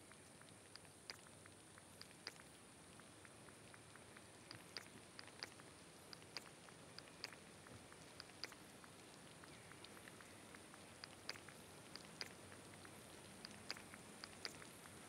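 Soft game menu clicks tick now and then.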